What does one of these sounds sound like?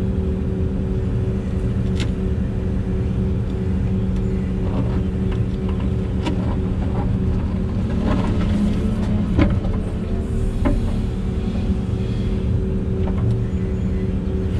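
A diesel engine drones steadily close by.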